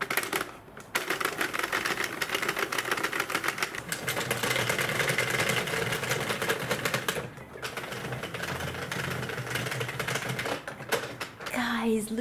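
A knitting machine clatters with fast, steady clicks as its crank turns.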